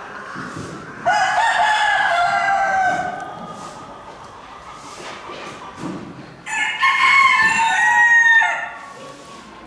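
A rooster crows loudly nearby.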